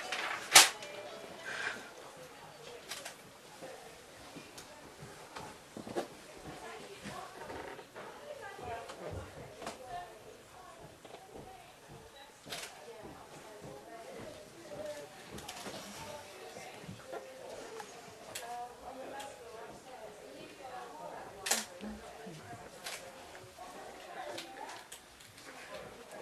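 Paper sheets rustle and flutter.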